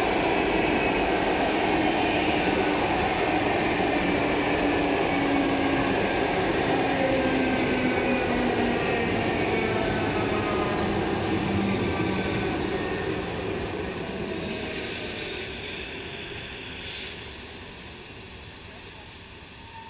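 A passenger train rumbles past close by, its wheels clattering on the rails, and the sound slowly fades.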